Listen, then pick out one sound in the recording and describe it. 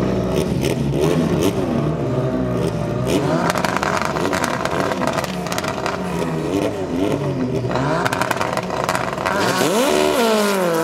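Drag racing car engines rev at the start line.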